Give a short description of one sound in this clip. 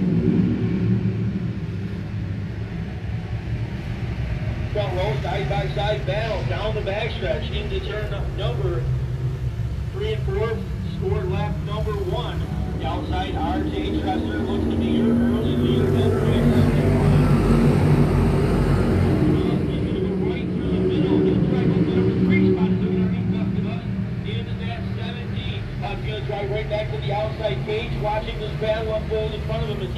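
Race car engines roar steadily in the distance, swelling as the cars pass closer.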